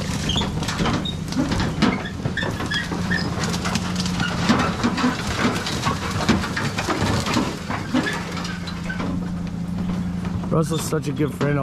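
A truck engine drones steadily nearby.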